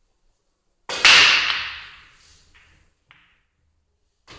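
Billiard balls clack together and roll across a table.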